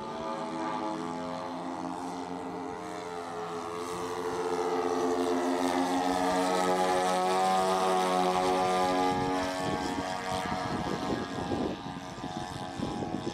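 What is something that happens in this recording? A propeller plane drones overhead, growing louder as it passes and then dropping in pitch as it flies away.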